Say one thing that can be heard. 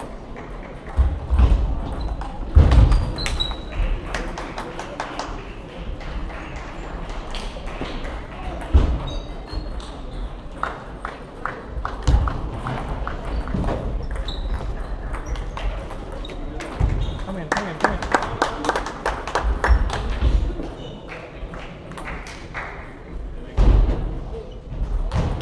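Players' shoes squeak and thump on the hall floor.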